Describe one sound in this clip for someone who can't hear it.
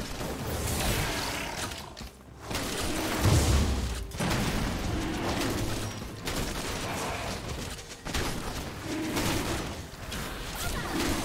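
Fantasy game battle effects whoosh and crackle.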